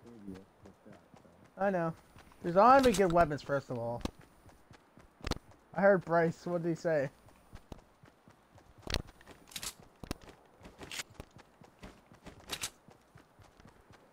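Footsteps thud quickly on grass.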